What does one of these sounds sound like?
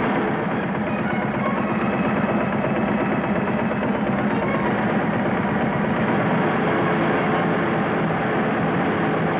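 A threshing machine rattles and rumbles steadily.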